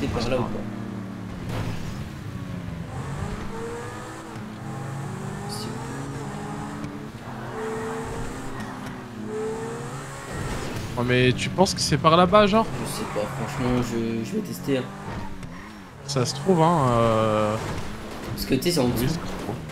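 A sports car engine roars, revving up and down.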